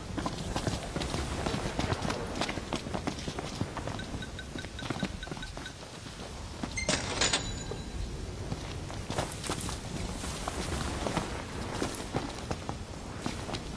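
Footsteps run over wet stone.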